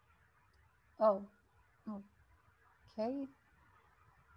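A young woman speaks briefly and calmly over an online call.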